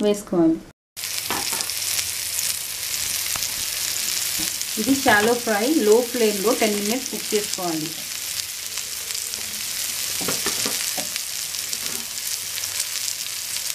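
Fish sizzles and crackles as it fries in hot oil.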